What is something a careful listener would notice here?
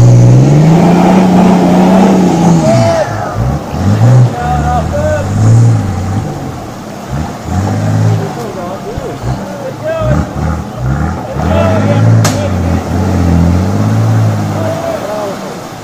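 Water splashes and sloshes around car wheels.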